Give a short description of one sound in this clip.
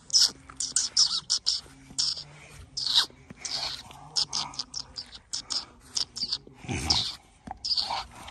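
A hand pats and rubs a dog's fur.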